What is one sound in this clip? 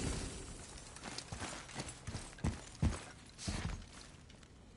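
Heavy footsteps thud on stone.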